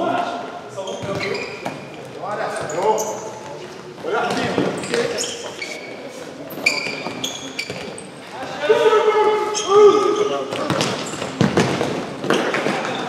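A ball thuds as it is kicked and bounces.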